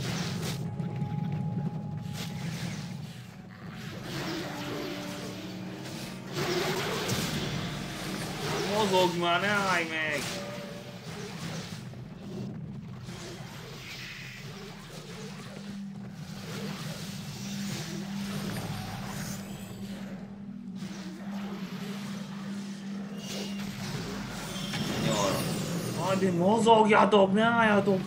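Fantasy game combat sounds clash and crackle with spell effects.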